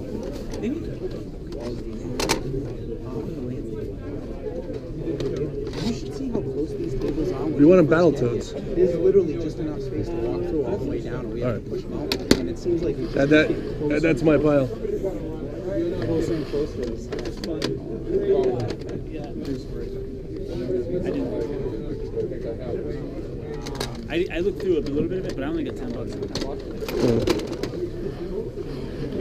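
Plastic game cases clack and rattle as a hand flips through them in a crate.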